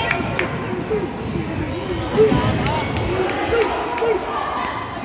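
Spectators murmur and call out in an echoing gym.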